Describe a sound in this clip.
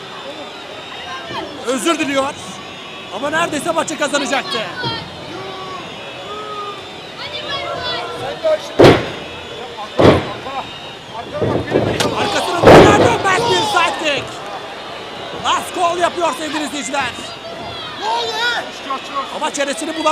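A crowd shouts and cheers loudly in a large echoing hall.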